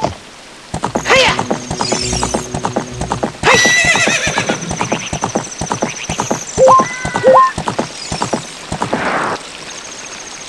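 A horse's hooves gallop quickly over the ground.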